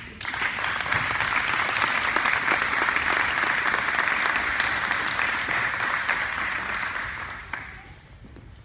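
An audience applauds loudly in a large echoing hall, then the clapping stops.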